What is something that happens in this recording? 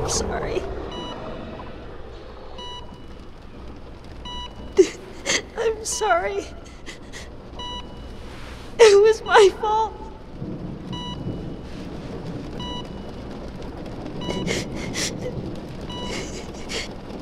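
A heart monitor beeps at a steady, even pace.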